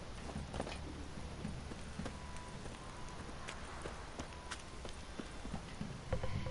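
Footsteps crunch on dirt at a brisk pace.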